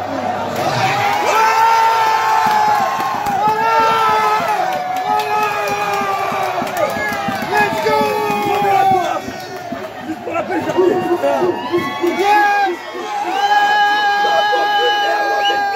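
Young men shout and cheer excitedly close by.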